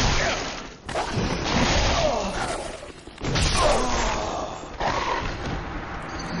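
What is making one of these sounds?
Creatures growl and screech.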